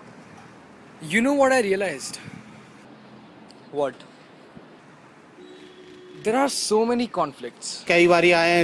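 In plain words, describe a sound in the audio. Two young men talk outdoors.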